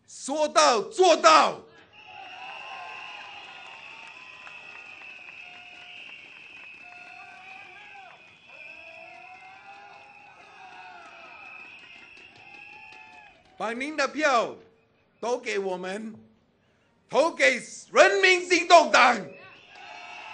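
A man shouts forcefully through a microphone, echoing outdoors.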